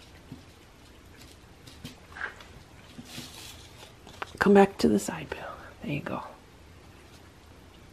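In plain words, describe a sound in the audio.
Cats lap and chew food softly and wetly.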